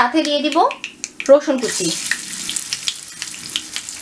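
Pieces of food drop into hot liquid in a pan.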